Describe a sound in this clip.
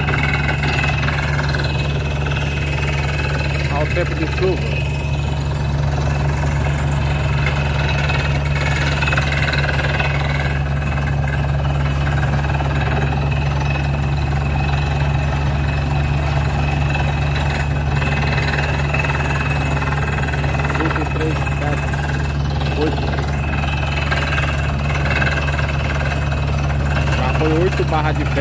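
Water and mud splash around a drill pipe.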